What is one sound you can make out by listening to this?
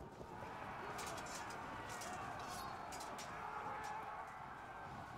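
Weapons clash and clatter in a battle.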